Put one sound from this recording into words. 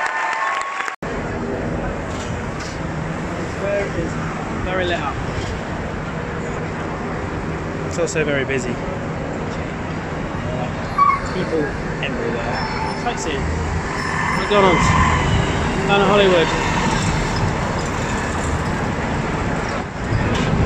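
A crowd of people chatters on a busy street.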